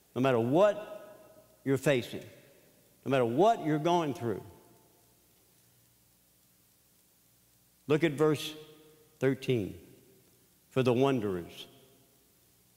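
An elderly man speaks with animation through a microphone in a large echoing hall.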